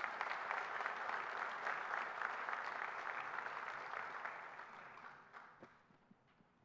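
An audience applauds in a large echoing hall, then the applause fades.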